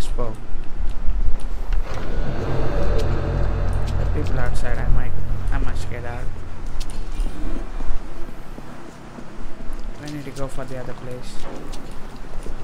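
Footsteps scuff across a stone floor.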